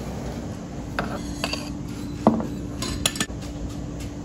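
A dish clinks as it is set down on a metal counter.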